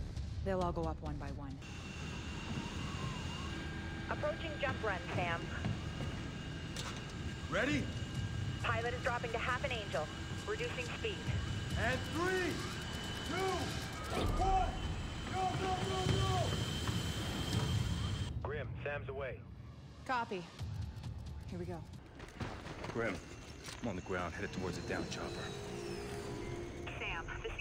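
Men speak tensely over a radio.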